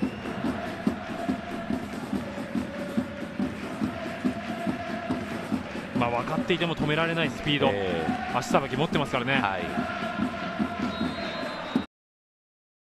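A large crowd chants and sings steadily outdoors.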